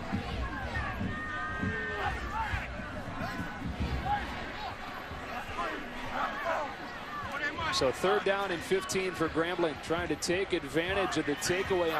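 A stadium crowd murmurs and cheers in the open air.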